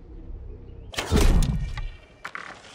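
An arrow is shot from a bow.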